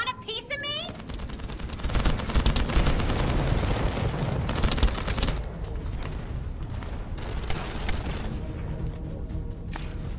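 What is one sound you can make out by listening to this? Gunfire and explosions boom loudly.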